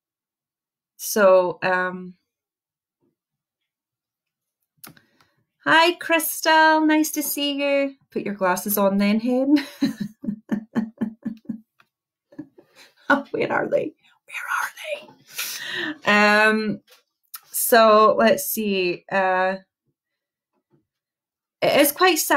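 A young woman talks with animation close to a microphone, with pauses.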